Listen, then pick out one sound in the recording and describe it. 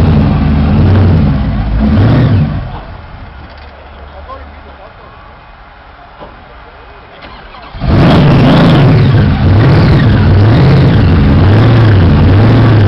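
A big engine revs up sharply, again and again.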